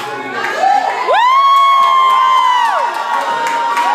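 A woman shouts with excitement close by.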